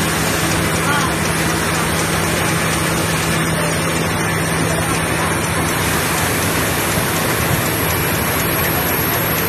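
Factory machinery hums and rattles steadily.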